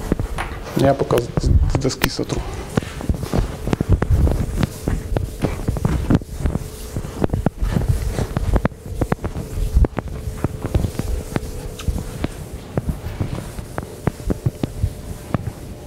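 A man rubs a board with a cloth, wiping it in quick scrubbing strokes.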